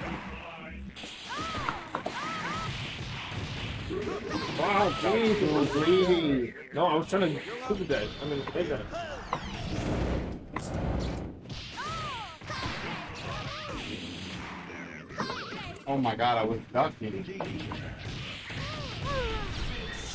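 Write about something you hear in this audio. Video game punches, blasts and special effects crackle in quick bursts.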